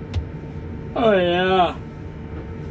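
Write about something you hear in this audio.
A man exclaims briefly and cheerfully nearby.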